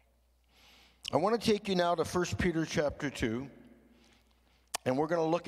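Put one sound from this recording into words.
An older man speaks calmly into a microphone, heard through loudspeakers.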